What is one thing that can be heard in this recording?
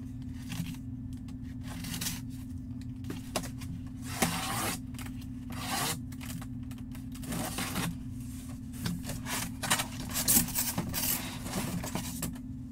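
Hands rustle and slide over a cardboard box.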